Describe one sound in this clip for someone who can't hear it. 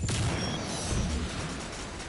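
A laser gun fires a shot.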